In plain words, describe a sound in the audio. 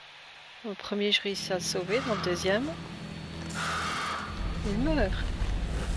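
A creature snarls close by.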